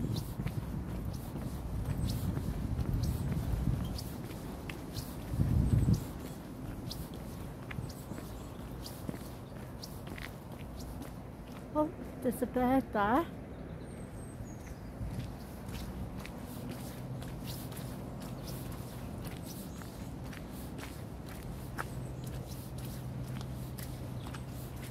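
Footsteps squelch and crunch along a muddy path.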